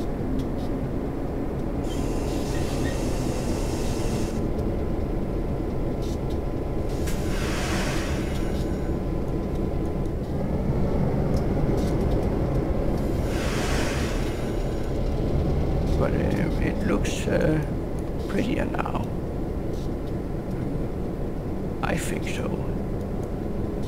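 Train wheels clatter along the rails.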